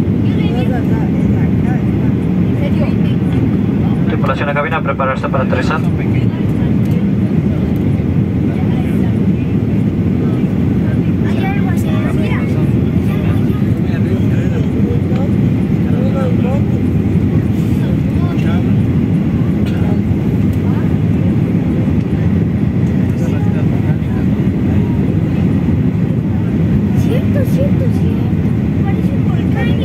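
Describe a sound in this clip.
A jet engine roars steadily inside an airliner cabin.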